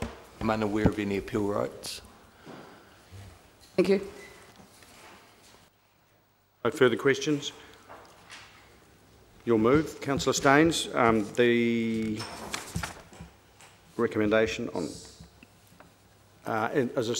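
A middle-aged man speaks calmly into a microphone in a large room.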